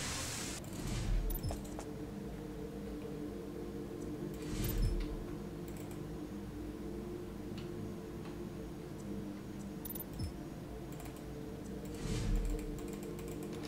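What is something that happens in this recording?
Soft menu chimes and clicks sound.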